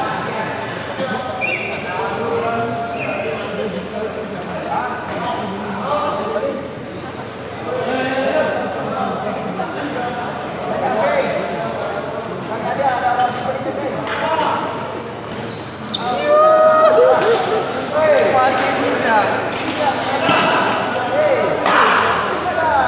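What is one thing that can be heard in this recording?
Several men talk and call out across a large echoing hall.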